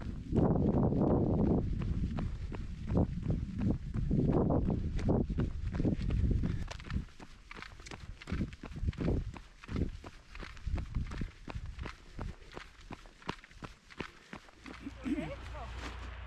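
Running footsteps slap steadily on a paved path.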